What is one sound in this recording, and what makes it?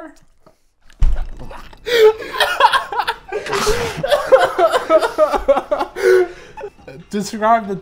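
A young man laughs loudly and talks with animation.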